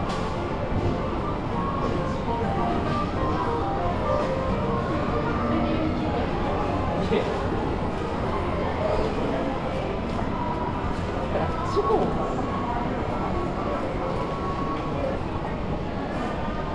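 People murmur and chatter in a large echoing hall.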